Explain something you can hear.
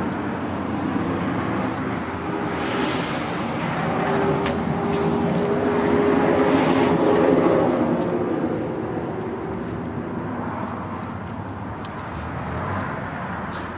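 The inline-four engine of a sport motorcycle runs.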